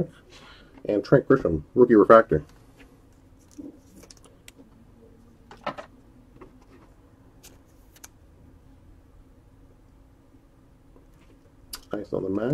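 Trading cards rustle and slide between fingers.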